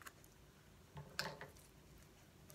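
A woman slurps and chews food close to a microphone.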